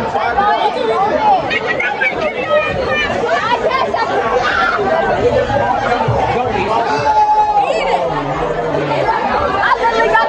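Teenage girls talk and laugh close by.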